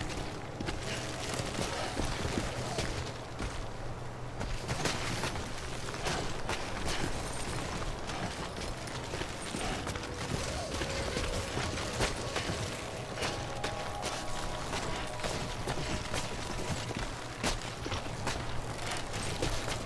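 Boots scrape and thud on rock during a slow climb down a cliff.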